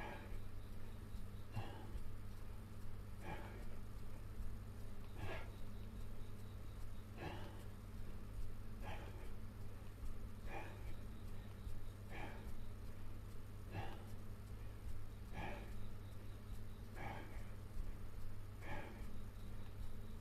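Bedding rustles rhythmically under a moving body.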